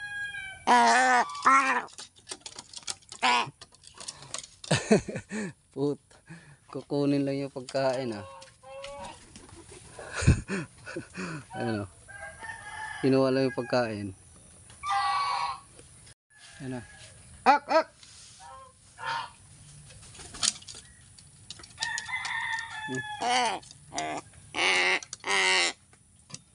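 A crow caws loudly and repeatedly close by.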